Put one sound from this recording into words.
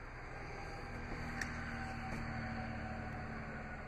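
A folding car seat back thumps down.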